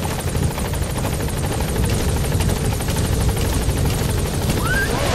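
Helicopter rotor blades thump rapidly and loudly overhead.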